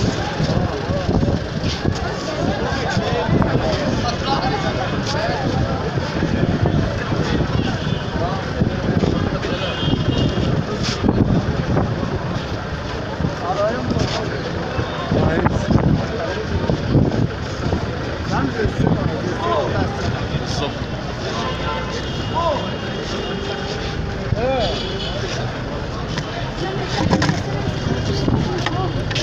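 Several men talk around the microphone in a lively outdoor crowd.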